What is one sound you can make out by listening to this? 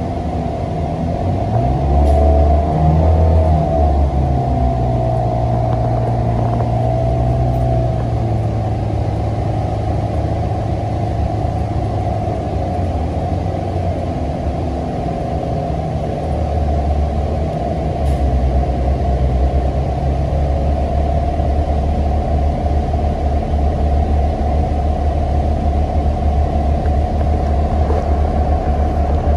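Tyres roll on the road beneath a bus.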